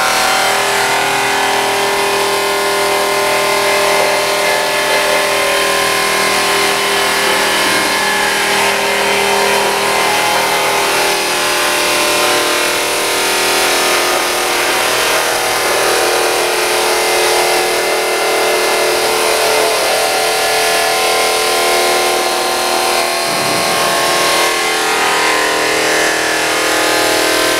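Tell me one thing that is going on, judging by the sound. A cutting machine hums and whines steadily.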